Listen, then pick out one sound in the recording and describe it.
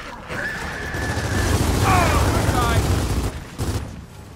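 Gunfire rattles in a rapid burst.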